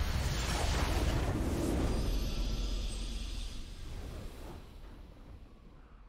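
A triumphant game fanfare bursts out loudly and fades away.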